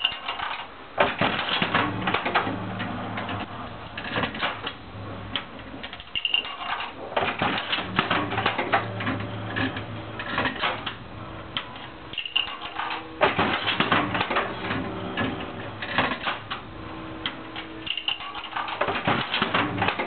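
A slot machine's lever clunks as it is pulled.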